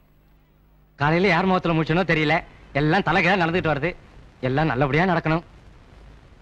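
A young man sings loudly and close by.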